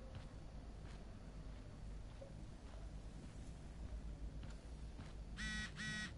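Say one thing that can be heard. Footsteps fall softly on a carpeted floor.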